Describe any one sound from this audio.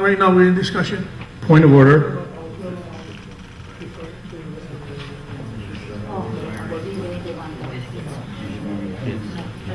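A middle-aged woman speaks quietly.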